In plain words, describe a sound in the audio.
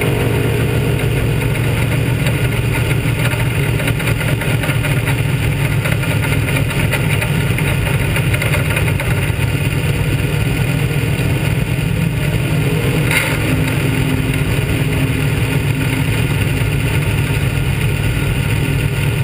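A race car engine roars steadily up close.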